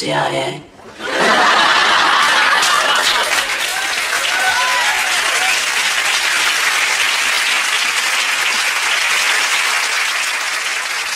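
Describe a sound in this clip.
A choir sings loudly with strong voices.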